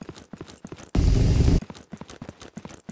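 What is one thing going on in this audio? An explosion booms loudly and briefly.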